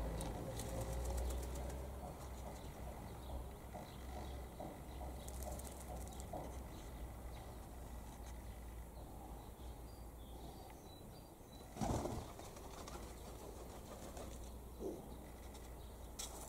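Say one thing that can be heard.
Pigeon feet scratch and patter on gravel.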